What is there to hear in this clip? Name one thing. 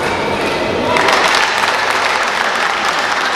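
Spectators clap and cheer after the rally.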